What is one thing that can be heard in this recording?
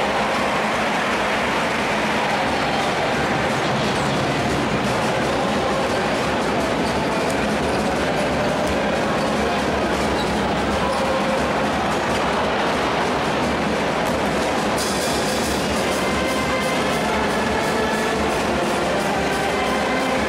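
A large crowd cheers and chants loudly in an echoing arena.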